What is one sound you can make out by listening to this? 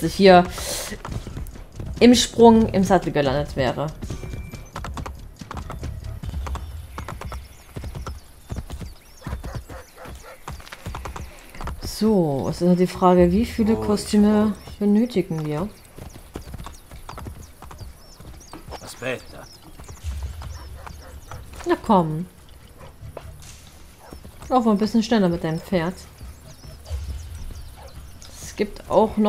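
Horse hooves clop rapidly on a stone path.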